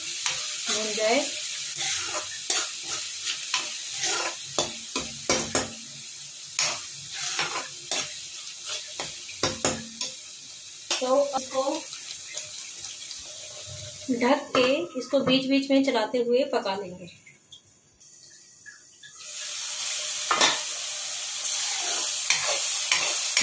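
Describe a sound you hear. Thick sauce sizzles and bubbles in a pan.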